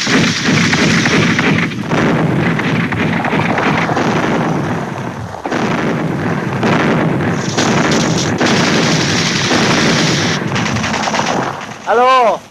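Heavy guns fire with loud, rumbling blasts.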